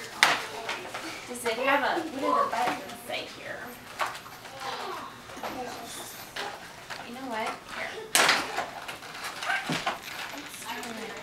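A toy dog barks in short yips.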